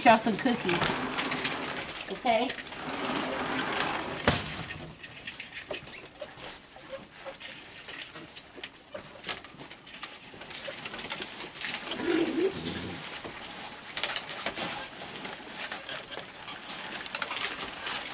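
Raccoons crunch and munch on food.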